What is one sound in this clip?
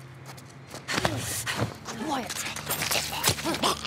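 A man grunts and struggles as he is grabbed from behind.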